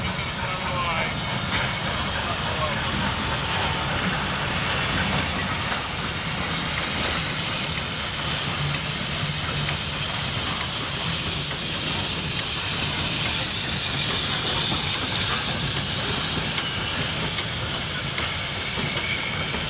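A steam rack-railway locomotive chuffs as it pushes uphill.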